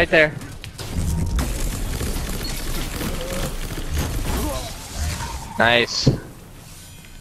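Video game blasts and crackling effects ring out.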